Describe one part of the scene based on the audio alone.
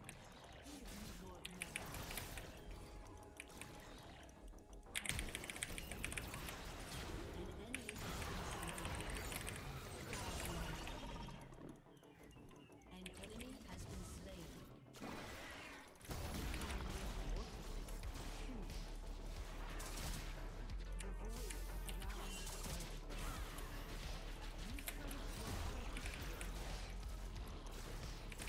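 Video game spells and hits sound.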